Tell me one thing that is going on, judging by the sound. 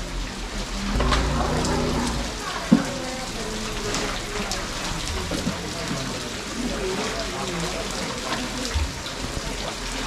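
Elephants rumble low and deeply close by.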